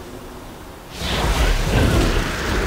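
A magical spell bursts with a loud whooshing blast.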